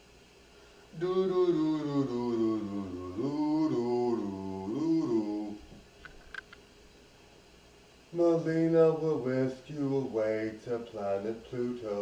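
A man speaks with animation, close by.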